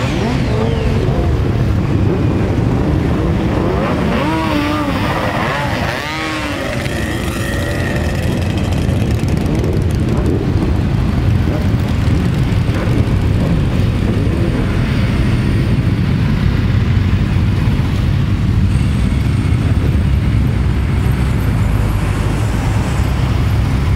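Many motorcycle engines rumble and rev close by, outdoors.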